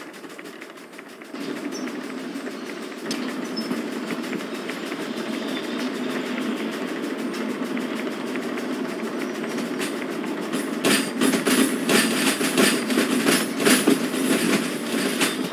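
A steam locomotive idles with a low rumbling hiss.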